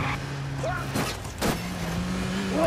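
A car thuds and scrapes against a post.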